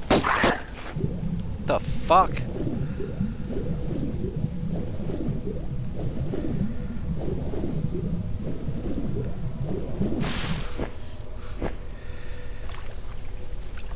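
Water churns and bubbles underwater.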